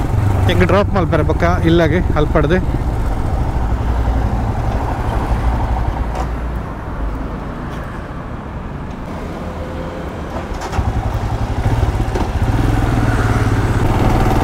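A motorcycle engine rumbles steadily as the bike rides along.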